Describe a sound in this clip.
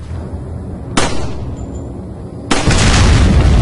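A pistol fires sharp, loud shots.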